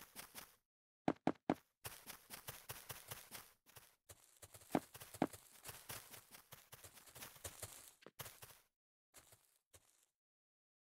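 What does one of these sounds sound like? Quick footsteps patter on hard blocks.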